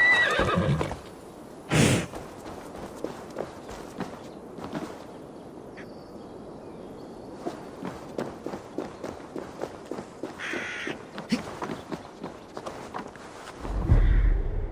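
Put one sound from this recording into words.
Footsteps patter across wooden planks and dirt.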